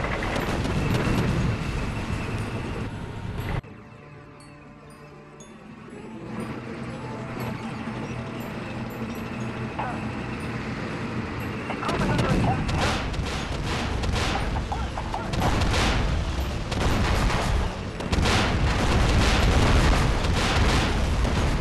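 Tank engines rumble and clank steadily.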